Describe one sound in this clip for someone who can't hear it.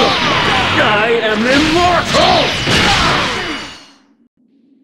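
An energy blast roars and crackles.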